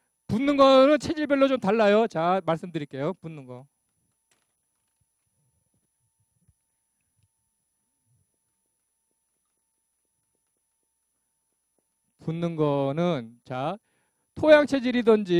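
An older man speaks calmly through a microphone, in a lecturing tone.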